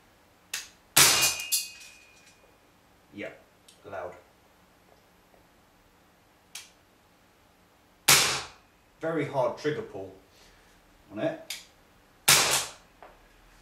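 A pistol fires with sharp cracks.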